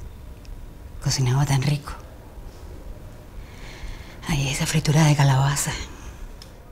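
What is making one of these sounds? An older woman speaks quietly and earnestly, close by.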